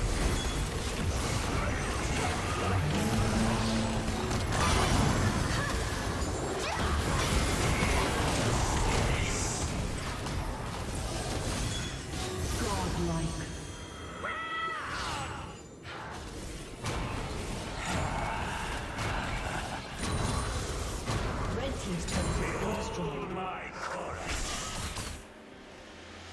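Video game spell blasts and weapon hits crackle and boom in a busy fight.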